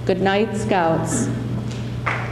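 A woman speaks into a microphone in a hall that echoes.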